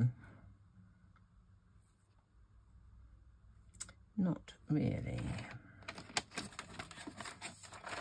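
A piece of card rustles as it is handled.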